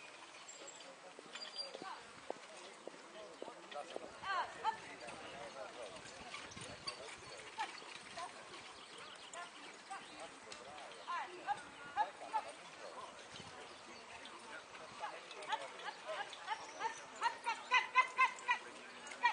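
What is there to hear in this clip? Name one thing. Horses trot on soft sand, pulling a carriage.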